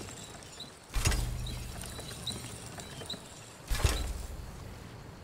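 Crafting tools clang loudly, twice.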